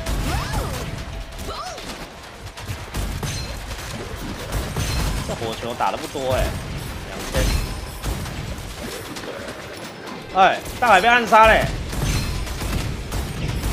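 Gunfire from a game weapon bursts repeatedly.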